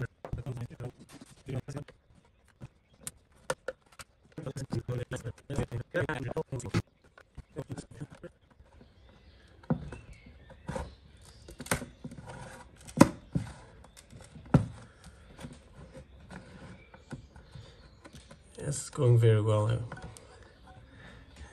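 Plastic parts click and snap as a battery casing is pried apart.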